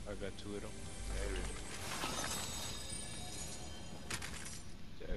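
A treasure chest creaks open with a chiming shimmer.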